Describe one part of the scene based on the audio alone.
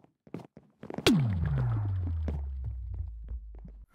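A deep tone sweeps down and rings out.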